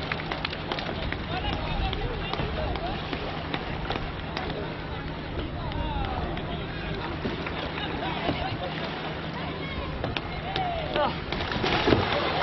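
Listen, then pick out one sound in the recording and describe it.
Paddles splash softly in calm water.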